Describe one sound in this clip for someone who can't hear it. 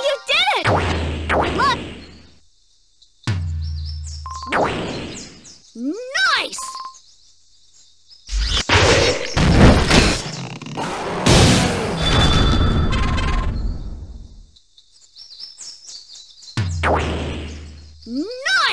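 Electronic tones swoop upward in quick chimes.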